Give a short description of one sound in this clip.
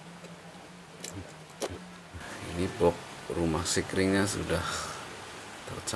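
Plastic parts click and rattle as a wiring connector is pulled loose.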